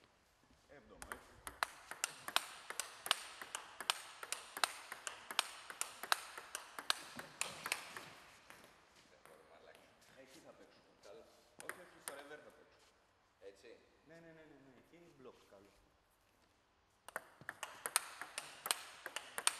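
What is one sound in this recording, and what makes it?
A ball clicks back and forth off bats and a table in a fast table tennis rally.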